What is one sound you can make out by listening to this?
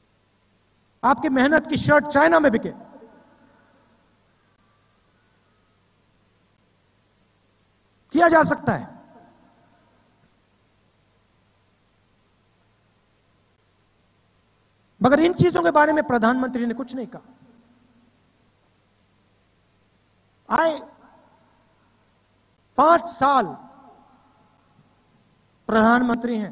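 A man speaks forcefully into a microphone in short bursts, with his words echoing over loudspeakers outdoors.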